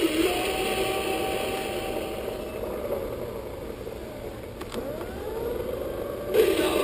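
A toy plays tinny electronic music through a small speaker.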